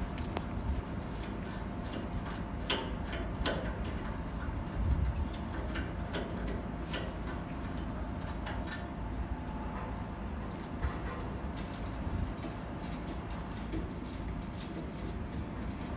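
A metal knob clicks and scrapes as a hand turns it.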